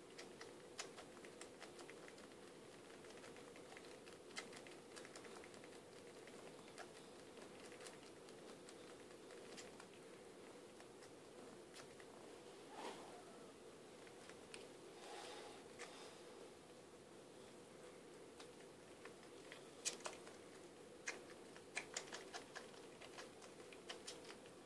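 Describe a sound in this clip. A cat licks fur with soft, wet, rasping strokes close by.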